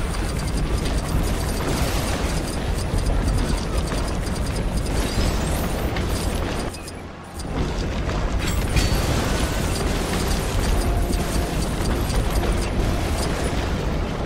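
Explosions boom repeatedly.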